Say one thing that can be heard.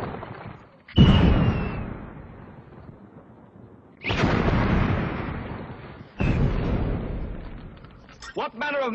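Fire bursts out with loud roaring whooshes.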